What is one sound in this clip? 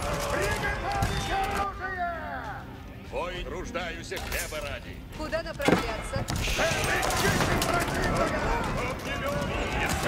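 Weapons clash in a battle.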